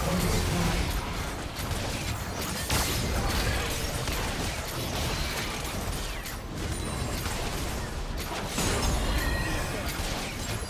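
Magic blasts and weapon hits crackle and burst in a busy video game battle.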